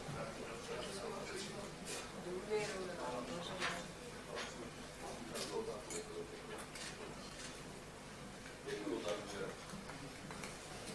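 Several men talk and murmur in a large echoing room.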